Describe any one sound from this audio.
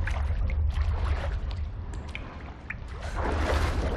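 Water splashes as a figure swims through it.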